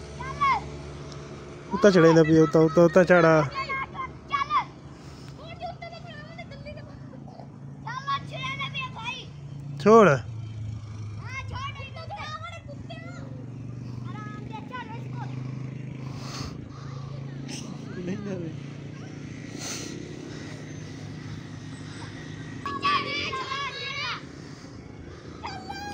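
Young boys shout and call to each other outdoors.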